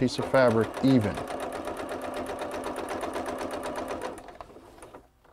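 A sewing machine whirs and stitches rapidly.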